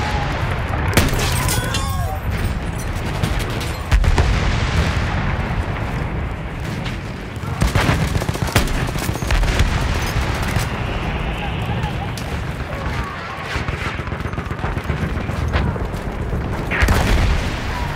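A rifle fires with sharp, loud bangs.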